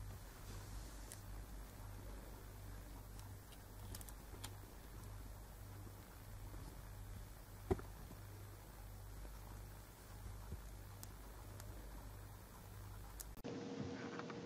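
A kitten bats and scrambles at a dangling string on a hard floor.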